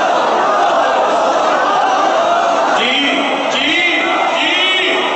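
A crowd of men chants loudly together in an echoing hall.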